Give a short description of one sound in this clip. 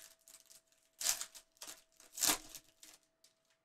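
A foil wrapper crinkles as a pack is torn open.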